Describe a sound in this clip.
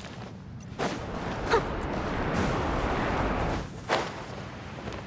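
Wind rushes loudly past during a glide.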